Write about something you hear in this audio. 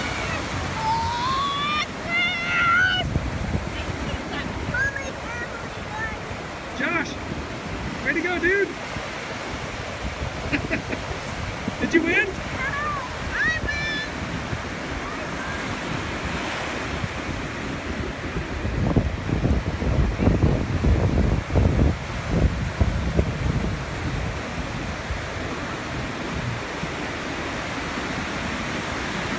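Waves wash and break on a beach throughout.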